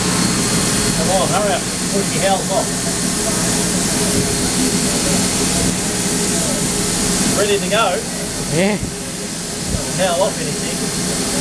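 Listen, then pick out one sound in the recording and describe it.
A man talks loudly over the engine noise.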